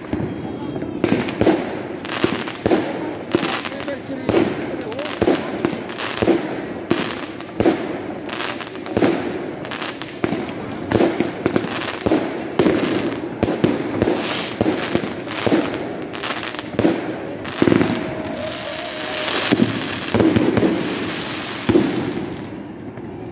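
Fireworks bang and crackle rapidly, echoing outdoors.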